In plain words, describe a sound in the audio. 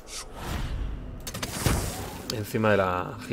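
A magical whoosh sweeps past.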